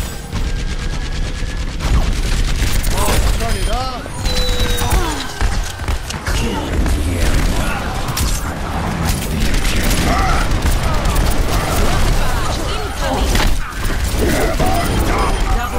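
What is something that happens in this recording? A rapid gun fires bursts of shots.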